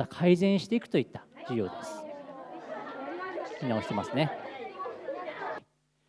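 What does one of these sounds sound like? Young girls sing together nearby.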